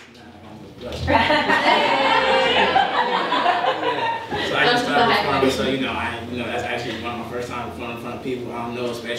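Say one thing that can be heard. A young man talks to a crowd.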